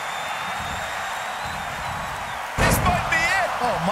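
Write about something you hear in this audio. A body slams hard onto a wrestling mat.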